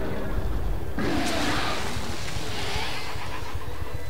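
A monster roars loudly with a deep, rasping growl.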